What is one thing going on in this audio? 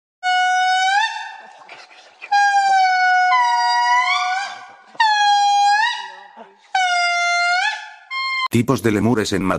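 A lemur gives loud, long wailing calls that rise and fall in pitch.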